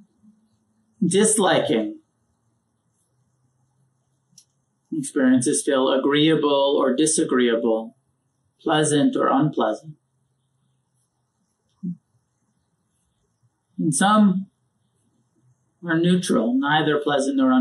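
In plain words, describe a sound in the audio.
A man speaks calmly and slowly into a close microphone, with pauses between phrases.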